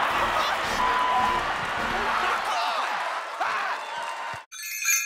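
A large stadium crowd cheers and shouts loudly outdoors.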